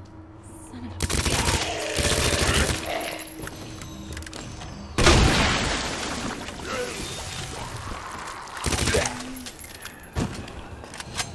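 Pistol shots ring out loudly in an echoing corridor.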